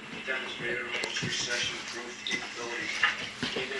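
A dog's claws patter and click across a wooden floor.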